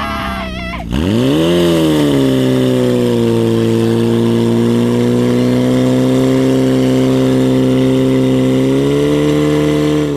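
A fire pump engine revs up sharply and keeps roaring at high speed.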